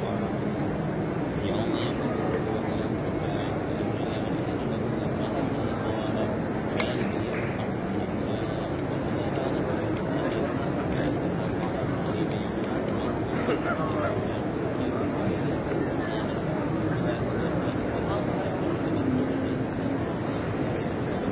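A huge crowd murmurs and chants in a wide open space far below.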